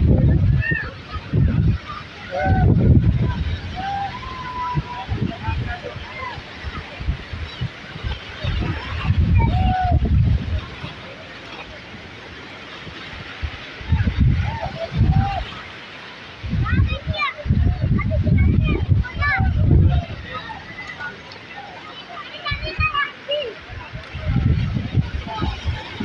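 A young boy calls out loudly outdoors.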